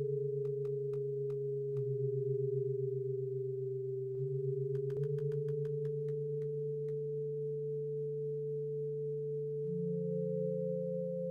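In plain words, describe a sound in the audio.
Electronic game music plays with a low steady synth drone and light ticking beats.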